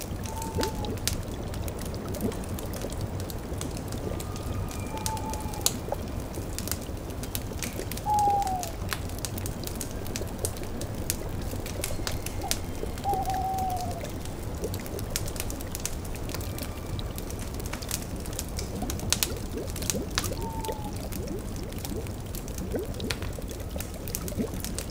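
A cauldron bubbles softly.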